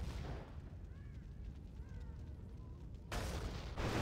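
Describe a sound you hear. Explosions boom in quick succession.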